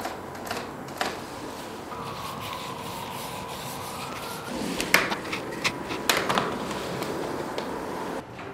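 A paint roller squelches in a paint tray.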